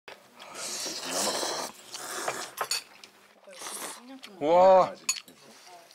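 A young man slurps noodles loudly.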